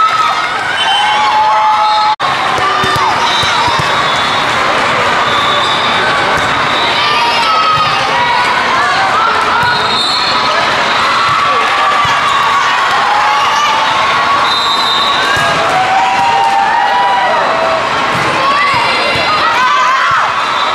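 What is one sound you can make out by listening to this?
Many voices chatter and call out across a large echoing hall.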